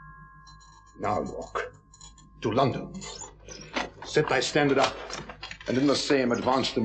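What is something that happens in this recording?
Another man answers with animation nearby.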